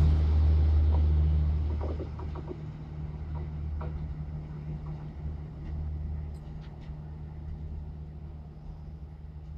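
A low engine hum fades as the train rolls into the distance.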